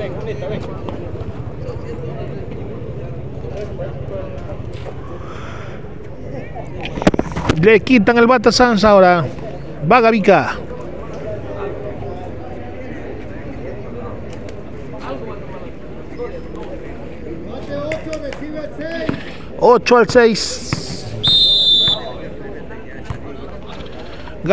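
A crowd of people chatters outdoors in the distance.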